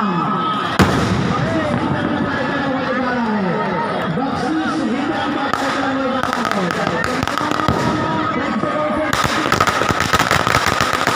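Firecrackers bang and crackle.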